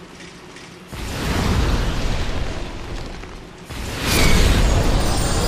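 A fireball roars and bursts with a loud whoosh.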